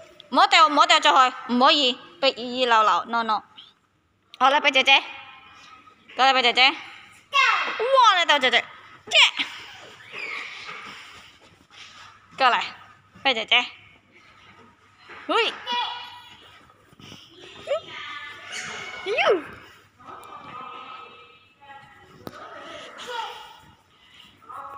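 A young child chatters excitedly nearby.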